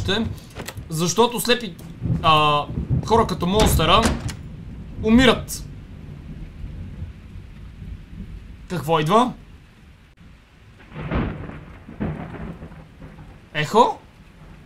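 A young man talks in bursts through a headset microphone.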